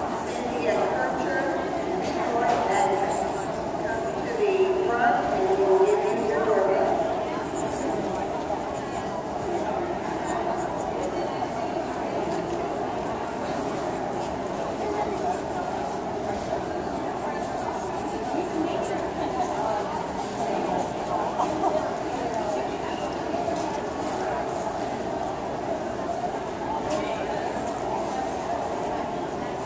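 A pencil scratches across paper close by.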